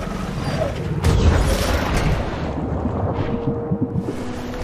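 Water churns and bubbles as a large sea creature dives back under.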